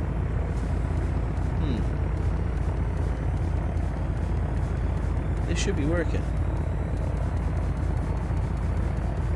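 An aircraft engine hums steadily and low.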